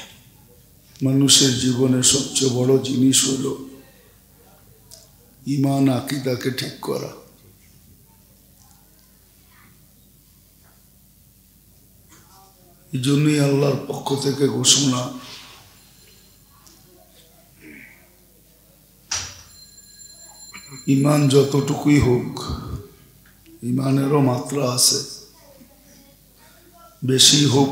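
An elderly man preaches with feeling into a microphone, in bursts with long pauses, heard through a loudspeaker.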